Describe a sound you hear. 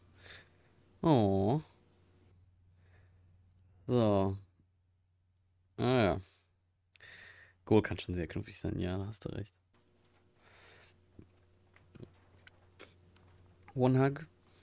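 A young man talks with animation close to a microphone, in short bursts with pauses.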